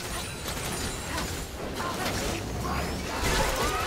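Magic spell effects whoosh and crackle in a fast fight.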